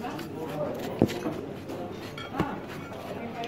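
Cutlery clinks on a plate.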